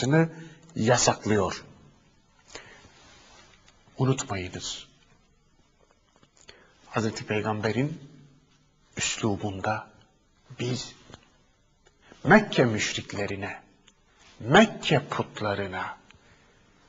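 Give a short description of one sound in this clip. A middle-aged man speaks calmly and clearly into a close microphone, with short pauses.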